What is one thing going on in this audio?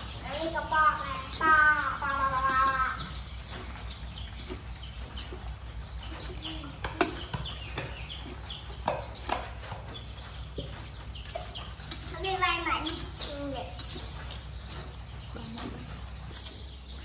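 A metal fork scrapes and clinks against a metal pan.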